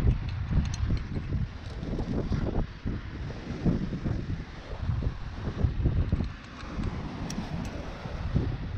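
A metal carabiner clinks against rock.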